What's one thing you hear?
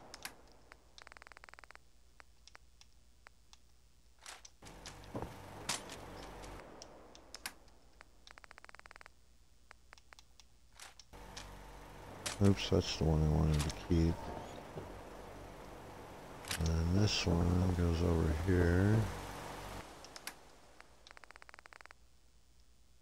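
A game menu ticks rapidly as items scroll by.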